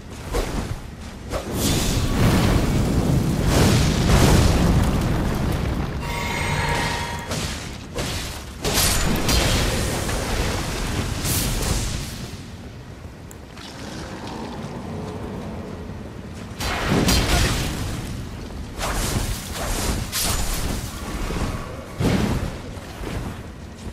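Blades swing and clash sharply again and again.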